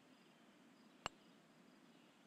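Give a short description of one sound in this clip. A putter taps a golf ball with a sharp click.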